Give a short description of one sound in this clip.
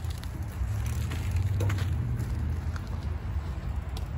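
Bicycle tyres crunch over gravel and pass by.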